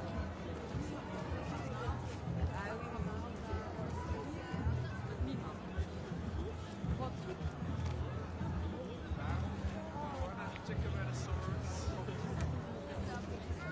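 A crowd of marchers chatters and talks outdoors.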